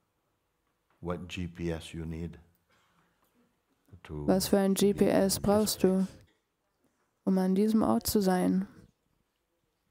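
An elderly man speaks calmly and slowly, with long pauses, close to a microphone.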